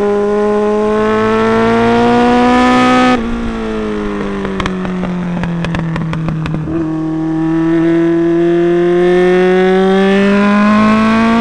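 A motorcycle engine whines at high revs, drops as it slows through a bend, then climbs again.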